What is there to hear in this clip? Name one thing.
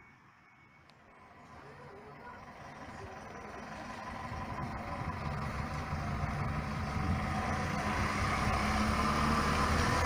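A bus engine rumbles closer and grows louder.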